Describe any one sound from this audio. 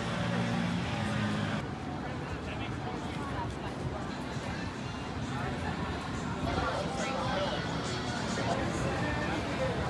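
A crowd of men and women chatters at a distance outdoors.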